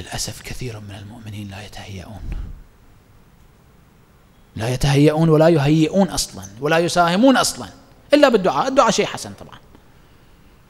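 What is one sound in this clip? A man speaks with animation into a microphone, in bursts with long pauses.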